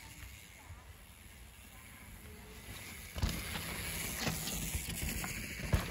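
Bicycles ride over dry leaves and bumpy ground nearby.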